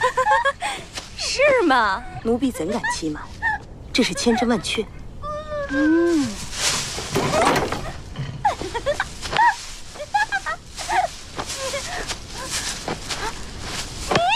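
Bodies thrash and rustle in dry straw.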